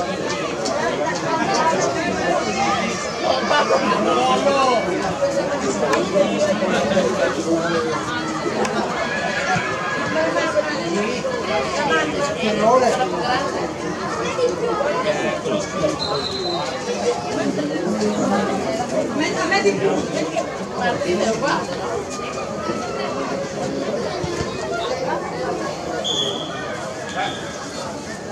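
A crowd of children and adults shout and cheer outdoors, heard from a distance.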